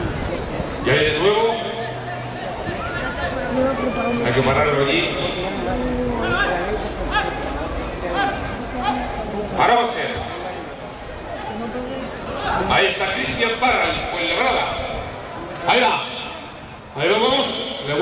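Young men shout loudly to call the bull.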